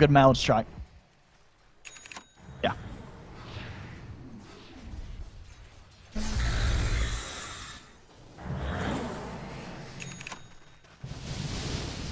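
Magic spells whoosh and crackle in a game battle.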